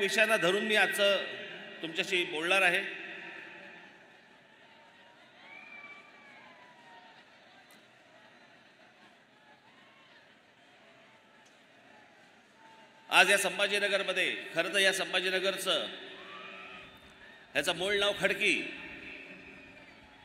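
A man speaks forcefully into a microphone, his voice echoing through loudspeakers outdoors.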